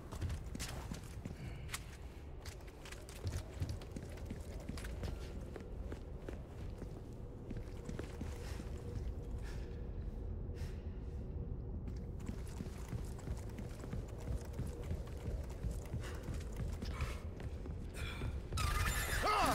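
Footsteps crunch on gravel and thump on wooden planks.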